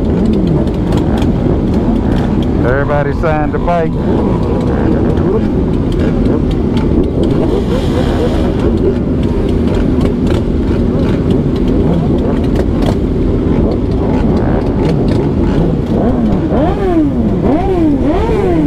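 Many motorcycle engines idle and rumble loudly close by.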